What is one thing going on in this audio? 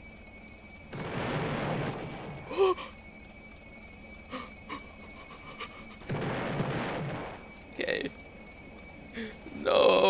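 Explosions boom one after another.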